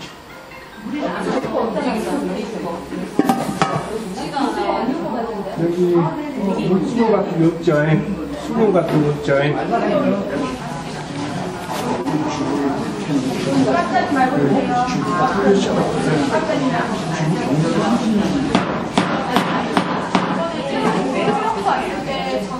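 Several women talk and laugh loudly nearby.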